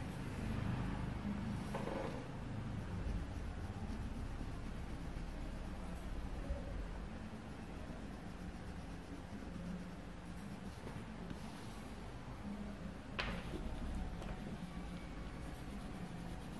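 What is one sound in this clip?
Paper cards slide and rustle across a cloth surface.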